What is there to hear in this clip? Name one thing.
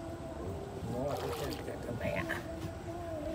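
Water drips and splashes from a net into a river.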